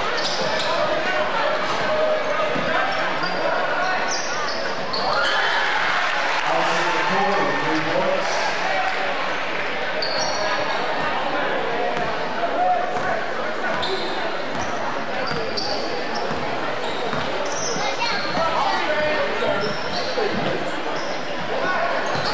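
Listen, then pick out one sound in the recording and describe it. A crowd murmurs and cheers throughout a large echoing gym.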